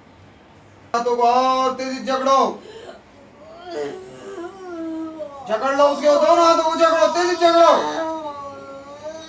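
A young woman wails and cries out loudly, close by.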